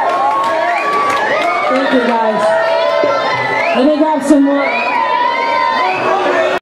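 A crowd cheers and shouts loudly in a packed, echoing room.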